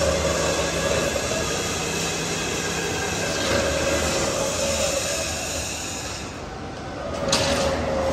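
A large gear wheel turns steadily with a loud mechanical rumble and whine.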